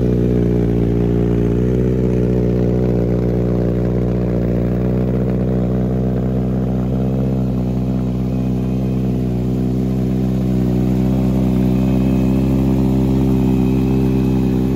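A motorcycle engine idles with a deep, steady rumble close by.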